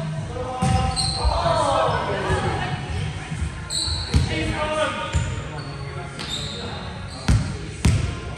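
Shoes squeak sharply on a hard court floor.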